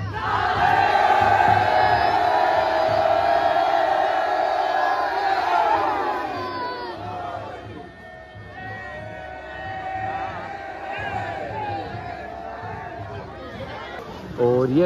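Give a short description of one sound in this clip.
Men in a crowd shout and cheer nearby.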